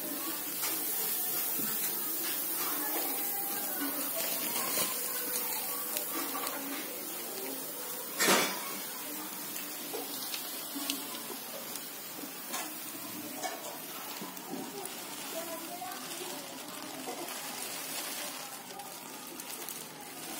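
Grain pours from a sack onto a pile with a steady hiss.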